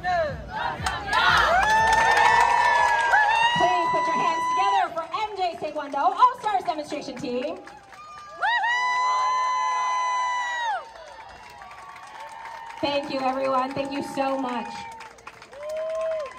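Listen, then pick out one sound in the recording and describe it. A group of young performers shout loudly together outdoors.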